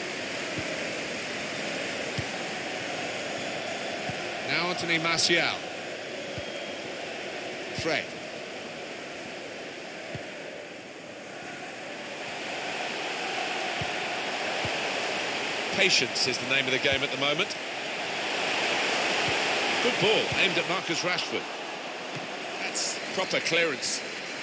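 A large stadium crowd roars and murmurs steadily, swelling at times.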